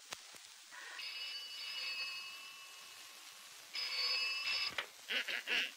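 A telephone rings.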